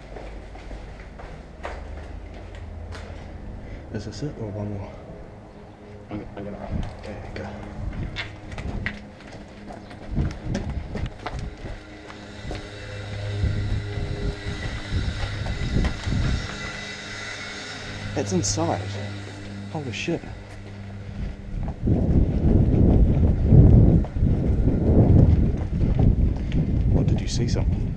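Footsteps scuff on concrete.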